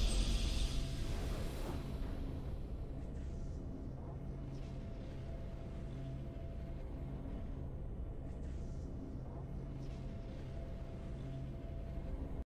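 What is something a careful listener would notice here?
A low, steady game soundtrack plays.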